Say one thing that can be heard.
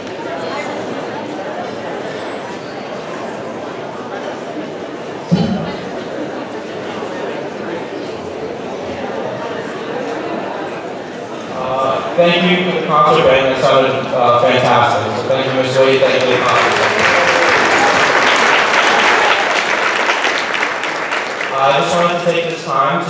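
A band plays music in a large echoing hall.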